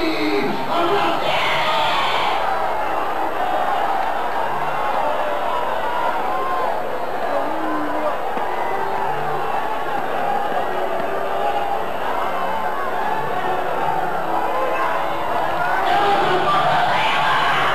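A large crowd prays and calls out loudly in a big echoing hall.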